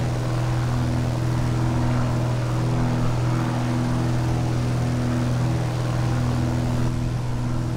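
Wind rushes past the plane.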